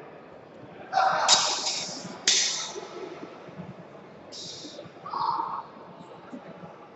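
Padded foam sticks strike with soft thuds.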